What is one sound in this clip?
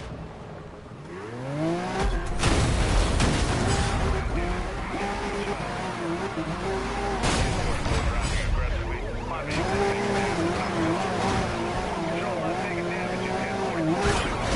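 A sports car engine roars and revs up at high speed.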